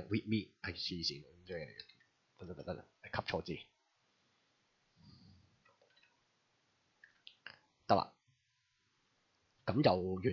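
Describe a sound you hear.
A young man talks calmly and close to a microphone, in short bursts with pauses.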